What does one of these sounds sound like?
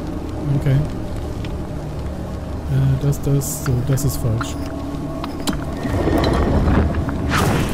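A stone dial clicks and grinds as it turns.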